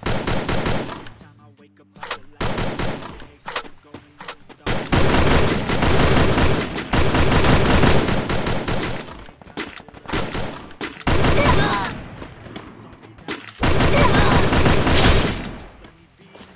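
Rifle shots ring out in bursts.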